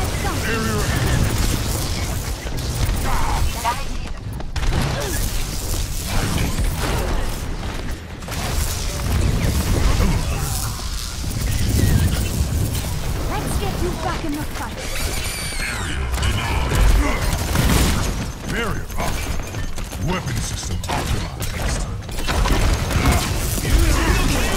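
Explosions and gunfire boom.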